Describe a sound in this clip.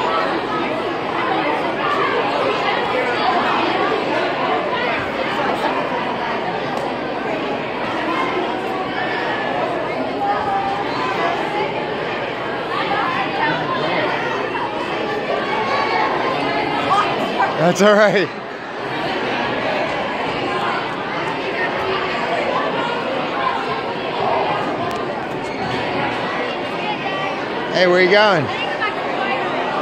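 A crowd of children and adults chatters loudly in a large echoing hall.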